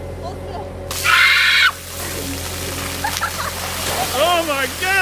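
A girl shrieks.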